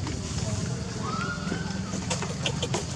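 A baby monkey squeals briefly.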